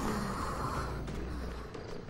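A fire crackles and hisses.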